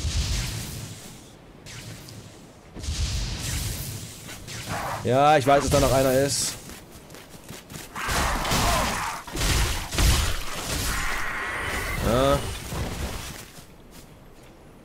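Footsteps tread through grass.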